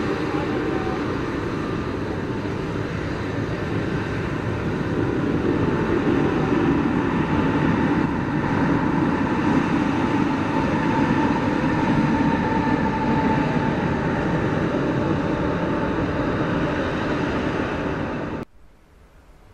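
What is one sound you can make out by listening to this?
A sweeper truck's engine rumbles loudly as it drives past close by.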